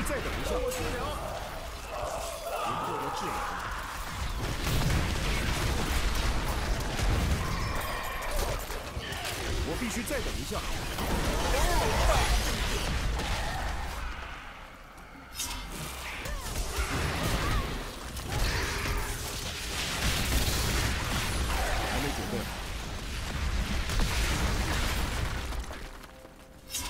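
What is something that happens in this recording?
Game spells crackle and explode with magical blasts.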